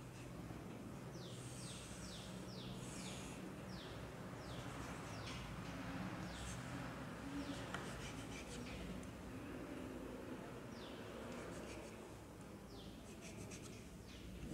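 Chalk squeaks and scratches on a board in short strokes.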